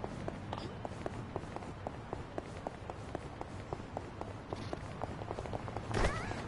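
Footsteps tap quickly on pavement as several people run.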